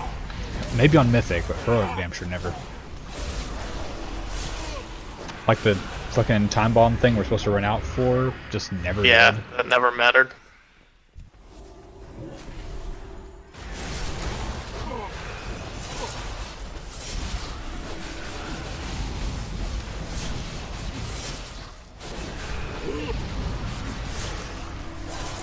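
Game combat sounds clash and crackle with spell effects.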